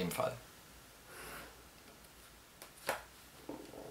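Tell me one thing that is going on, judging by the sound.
A plastic set square is laid down on paper with a light clack.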